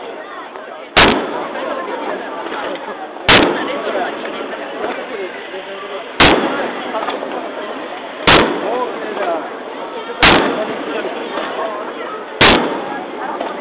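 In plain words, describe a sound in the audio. Fireworks burst with loud booming bangs that echo away.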